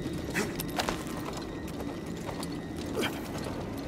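A rope creaks and rattles as someone climbs it.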